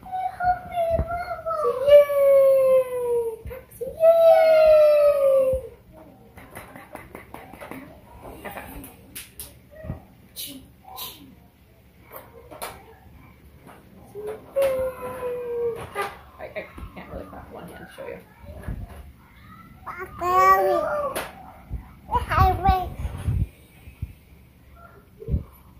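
A baby babbles and coos up close.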